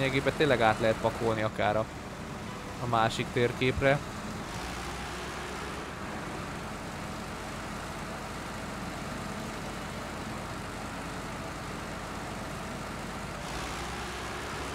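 A heavy truck engine rumbles steadily as it drives through mud.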